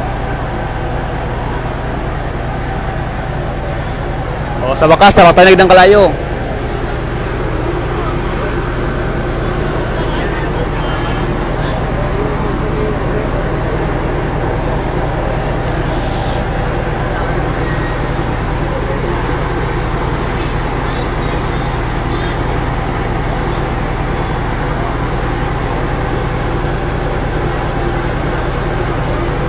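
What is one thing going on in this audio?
A fire engine's pump engine hums steadily nearby.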